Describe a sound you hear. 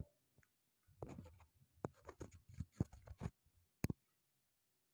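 A microphone thumps and clicks as it is handled.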